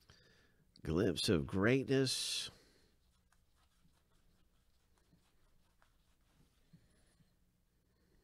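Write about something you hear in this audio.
Trading cards slide and tick softly against each other.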